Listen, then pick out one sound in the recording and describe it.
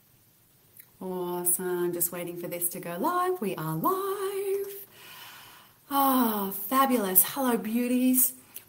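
A woman sings close to a microphone.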